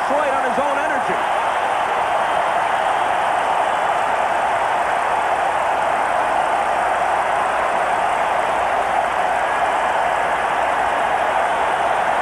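A large crowd cheers and roars in a domed stadium.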